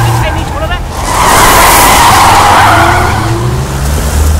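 A car rushes past close by.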